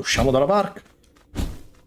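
A man speaks briefly with animation close to a microphone.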